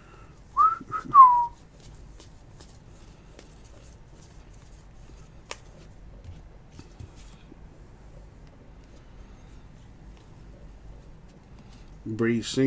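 Trading cards slide and flick softly against each other.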